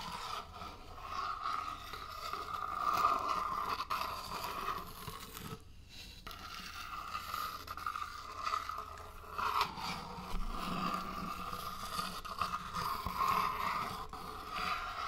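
A lid twists and scrapes against a jar close to a microphone.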